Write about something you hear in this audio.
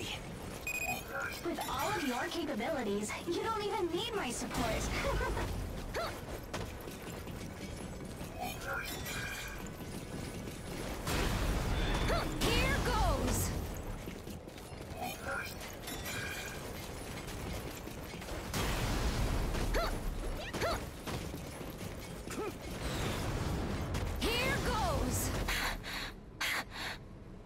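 A sword swishes and slashes repeatedly.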